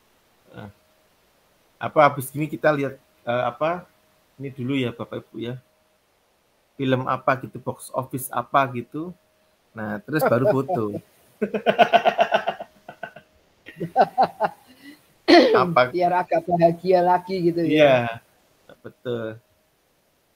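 A young man talks calmly over an online call.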